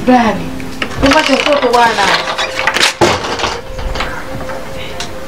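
A woman speaks loudly nearby.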